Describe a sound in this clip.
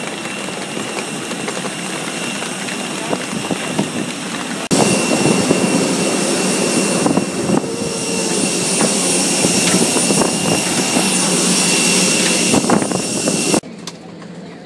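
A loud jet engine roars steadily outdoors.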